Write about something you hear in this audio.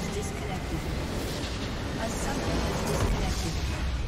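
A large structure shatters and collapses with a crash.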